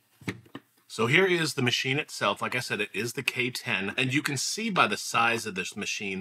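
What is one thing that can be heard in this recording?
A middle-aged man speaks calmly and with animation, close to a microphone.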